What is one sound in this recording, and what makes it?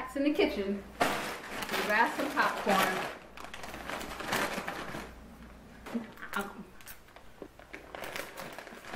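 A chip bag crinkles and rustles.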